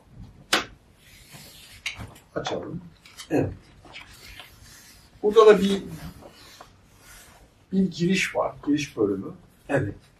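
Large paper sheets rustle and crinkle.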